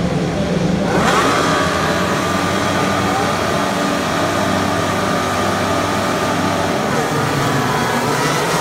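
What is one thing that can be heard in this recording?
Racing car engines rev up sharply with a high, rising whine.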